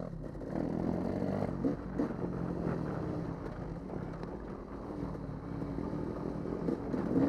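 Tyres crunch and rattle over a bumpy dirt track.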